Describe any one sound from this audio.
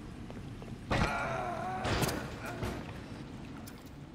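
A heavy metal lever clunks into place.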